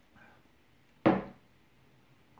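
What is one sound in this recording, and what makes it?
A glass is set down on a table with a knock.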